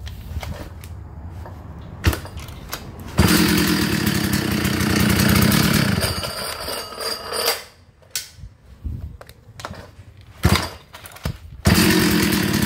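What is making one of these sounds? A chainsaw's starter cord is pulled sharply.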